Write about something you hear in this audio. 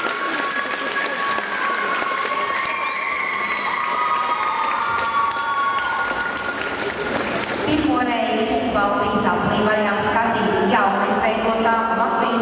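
An audience applauds and cheers in a large echoing hall.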